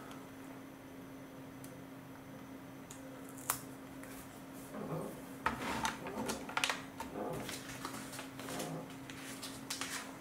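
Plastic toy bricks snap together.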